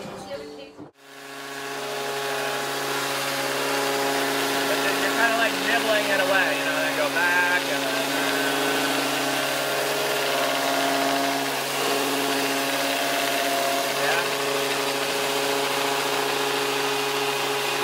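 An electric sander whirs steadily on wood.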